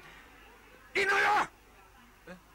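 A man shouts loudly and briefly.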